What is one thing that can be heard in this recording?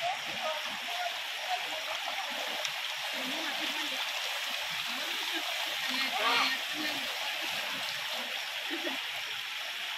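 Water splashes as a boy wades and washes a bicycle.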